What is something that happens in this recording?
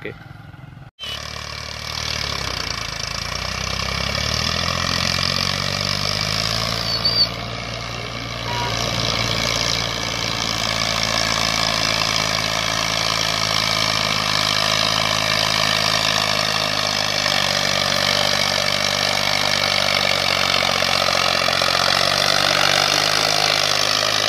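A tractor engine chugs steadily, growing louder as it approaches.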